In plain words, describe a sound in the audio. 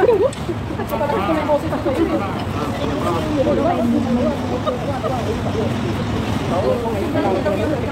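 Young women chat and talk over one another nearby, outdoors.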